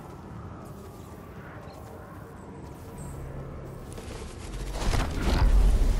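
Footsteps thud quickly on dirt.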